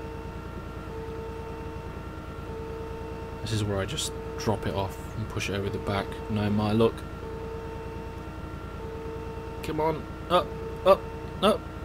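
A forklift's lift motor whines as it raises a load.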